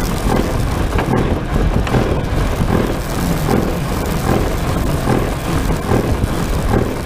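Wind rushes past a thin film canopy.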